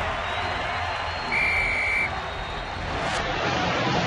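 A large crowd cheers and roars in a big open stadium.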